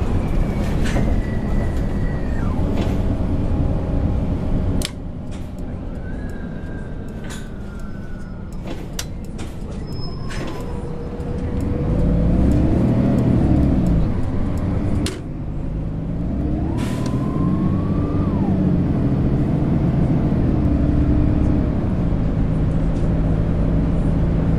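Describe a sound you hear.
Clicks and knocks sound inside the bus cab.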